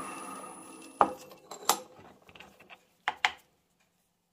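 Metal parts knock and clank sharply a few times.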